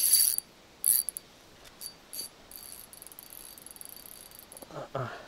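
A fishing reel clicks and whirs as it is wound in.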